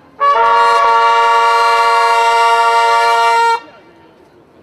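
Brass trumpets play a loud, held fanfare.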